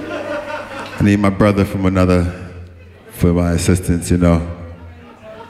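A man speaks loudly into a microphone through loudspeakers, in short bursts.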